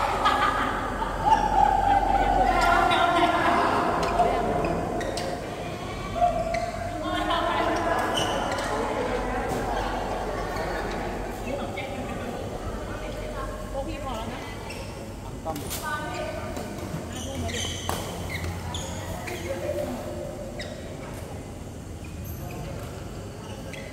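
Shuttlecocks are struck by rackets with sharp pops in a large echoing hall.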